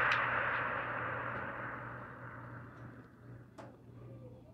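An explosion booms and slowly rumbles away.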